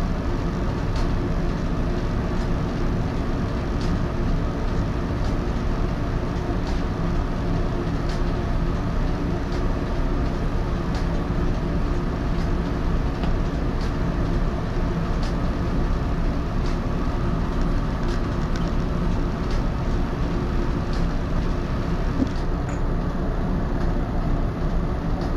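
A stopped train hums steadily with a low drone.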